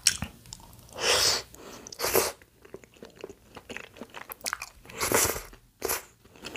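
A young woman slurps noodles loudly, close to the microphone.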